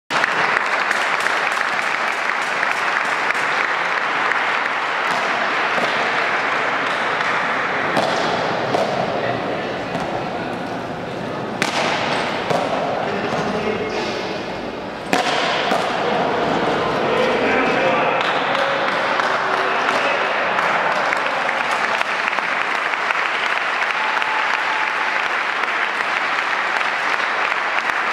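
A hard ball smacks against bats and a wall, echoing in a large hall.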